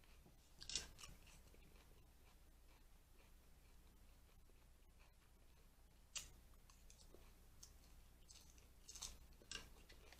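A woman chews and crunches lettuce close to a microphone.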